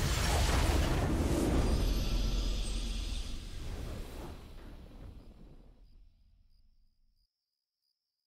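A triumphant game fanfare swells and then fades away.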